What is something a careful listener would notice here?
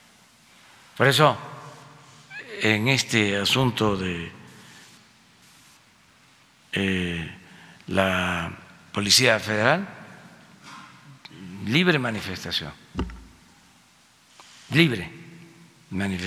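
An older man speaks slowly into a microphone, with long pauses.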